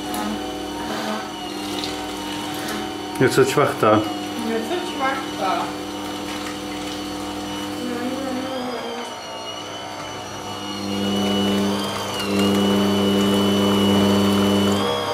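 An electric juicer motor hums steadily, growing louder near the end.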